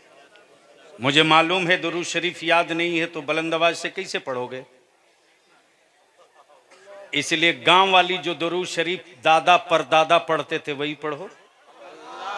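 A man chants loudly into a microphone over a loudspeaker, in a large echoing space.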